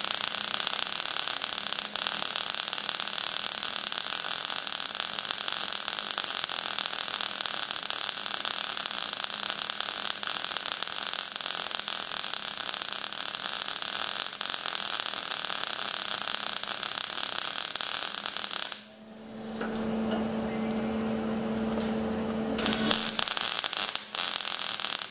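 An electric welding arc crackles and hisses steadily.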